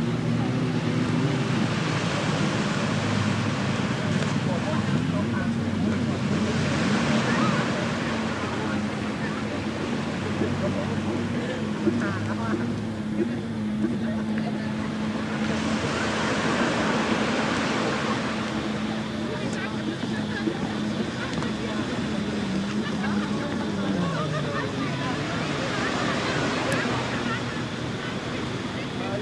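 Small waves wash onto a sandy shore.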